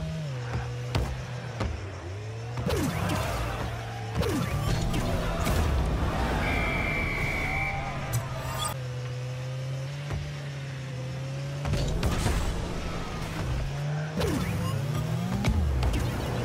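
A ball is struck with loud thumps.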